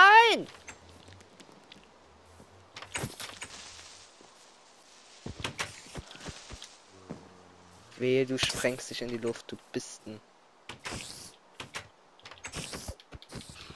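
Wooden doors creak open and bang shut.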